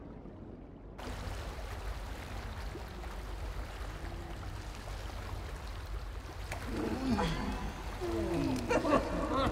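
Water splashes and sloshes as a heavy body surfaces.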